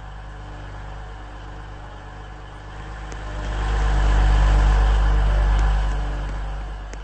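An electric train hums as it pulls into a platform.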